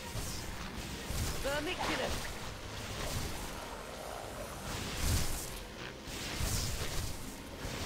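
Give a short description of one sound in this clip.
Magic spell blasts whoosh and crackle in a game.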